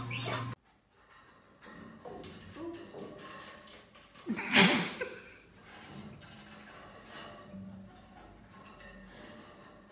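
A dog's paws thud on wooden stairs.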